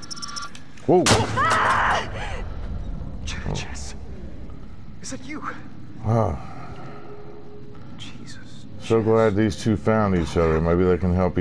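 A man exclaims and speaks in alarm, close by.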